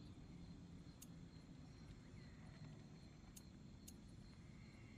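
Short soft clicks sound as a menu selection changes.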